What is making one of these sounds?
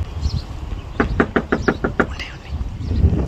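Knuckles knock rapidly on a wooden door.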